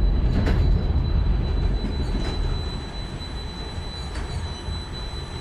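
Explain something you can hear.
A funicular car rumbles low and steady along its track, slowly easing.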